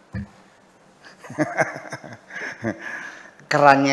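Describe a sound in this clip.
An elderly man laughs softly near a microphone.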